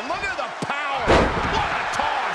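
A heavy body slams onto a wrestling mat with a loud thud.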